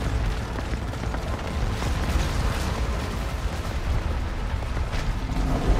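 Explosions rumble deeply.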